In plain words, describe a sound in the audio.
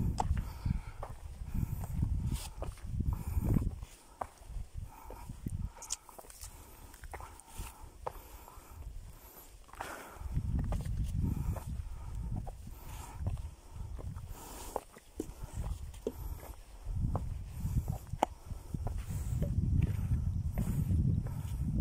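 Footsteps crunch on a stony dirt path.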